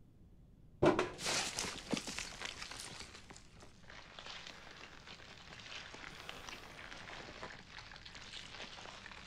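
Loose contents rattle and rustle inside a metal tin.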